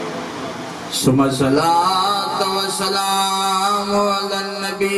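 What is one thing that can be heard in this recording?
A man chants in a loud, drawn-out singing voice through a loudspeaker.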